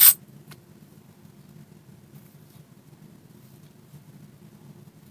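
A knife scrapes and shaves wood in soft, short strokes.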